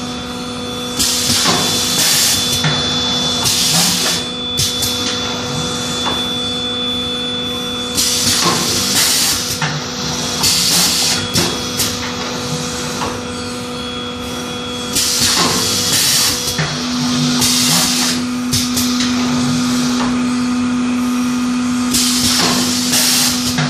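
Compressed air hisses in short bursts.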